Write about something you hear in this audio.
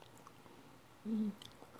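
A young woman hums briefly close to a microphone.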